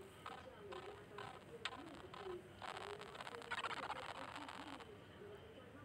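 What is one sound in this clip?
A video game plays short electronic beeps and a hissing sound effect.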